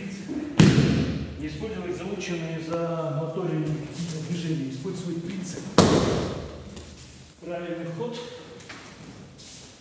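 A man talks calmly nearby in an echoing room.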